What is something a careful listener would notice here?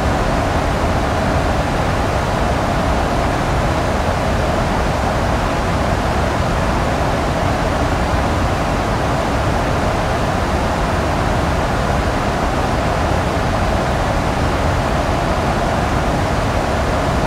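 Jet engines roar steadily in flight.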